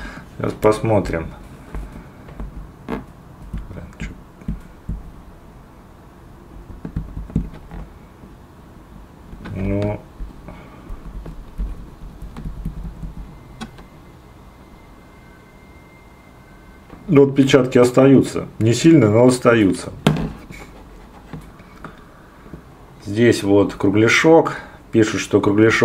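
Fingers click and tap on a small plastic device.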